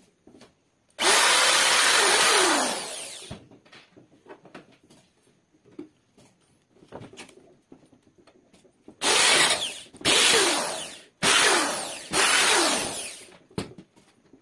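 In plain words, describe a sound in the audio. An electric drill whines loudly as it bores through wood, then winds down.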